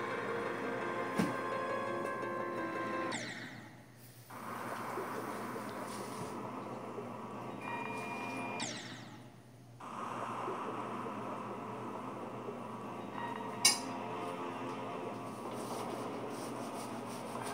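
Upbeat electronic game music plays.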